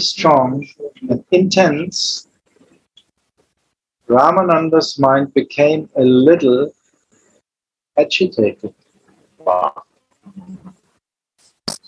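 A man speaks in short bursts with pauses.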